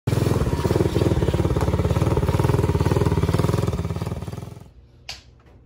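A small quad bike engine runs loudly close by.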